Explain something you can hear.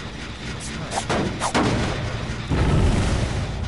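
A metal trap snaps shut with a loud clang.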